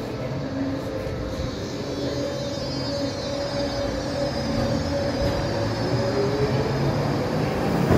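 Train wheels squeal and whine on the rails.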